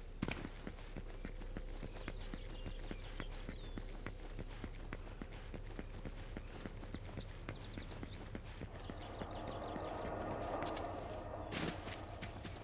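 Quick footsteps patter on stone as a figure runs.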